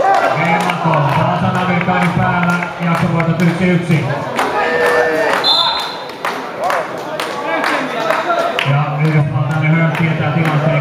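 Men and women in an audience talk and call out in a large echoing hall.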